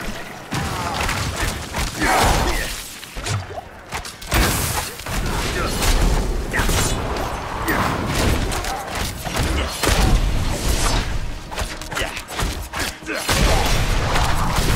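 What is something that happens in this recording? Weapon blows and spell blasts crash and thud in quick succession.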